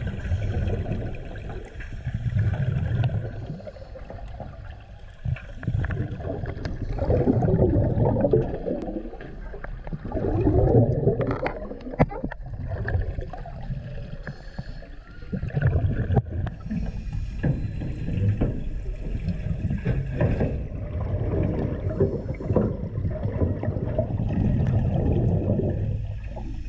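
Bubbles gurgle and rush in bursts underwater as a diver breathes out.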